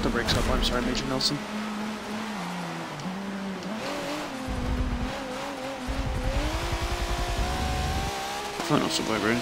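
A race car engine revs and drones, shifting up and down through the gears.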